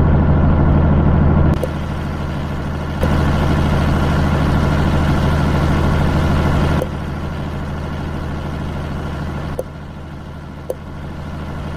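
A truck engine rumbles steadily with a low drone.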